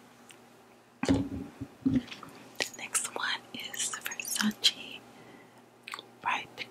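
A young woman whispers close to a microphone.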